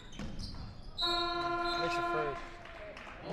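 A referee blows a loud whistle.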